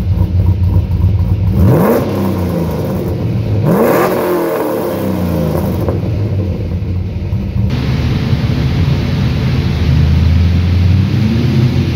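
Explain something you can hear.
A car engine rumbles loudly through the exhaust at idle.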